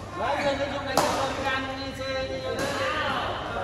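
A racket smacks a shuttlecock.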